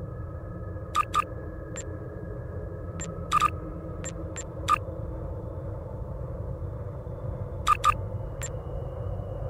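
Short interface clicks sound as game menu buttons are pressed.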